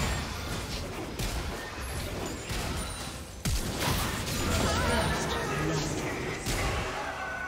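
Magic blasts and weapon hits clash in a busy fight.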